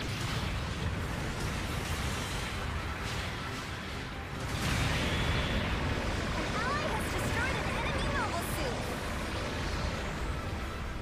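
Jet thrusters roar steadily, surging louder partway through.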